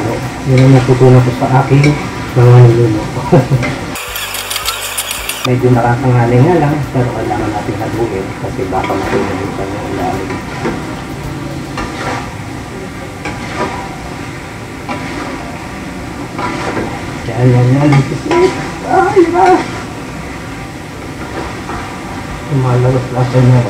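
A metal spatula scrapes and clinks against a wok.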